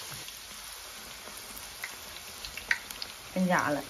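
Chopsticks tap against a metal pan.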